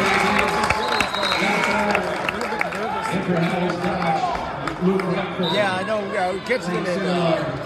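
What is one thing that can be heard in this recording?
A crowd chatters and shouts in a large echoing gym.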